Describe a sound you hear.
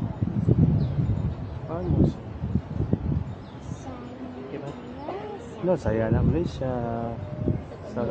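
A crowd of children chatters and shouts in the distance outdoors.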